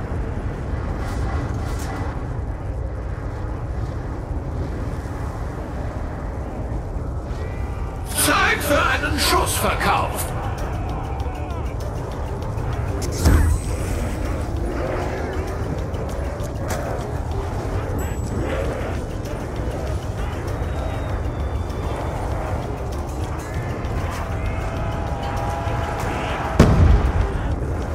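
A fire roars and crackles steadily.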